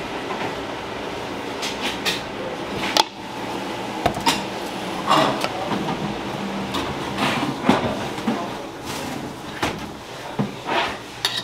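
Thick batter pours and plops into a metal bowl.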